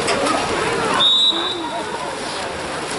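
A referee blows a sharp whistle once.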